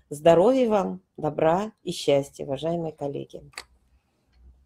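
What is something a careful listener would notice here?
A woman speaks calmly through a microphone in an online call.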